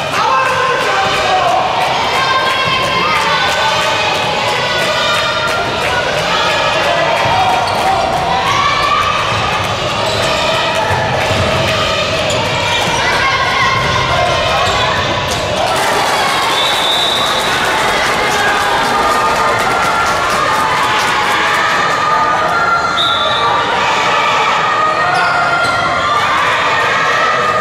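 A crowd of young spectators chants and cheers loudly in a large echoing hall.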